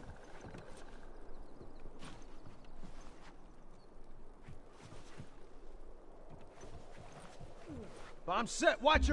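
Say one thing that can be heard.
Slow, soft footsteps thud on wooden boards.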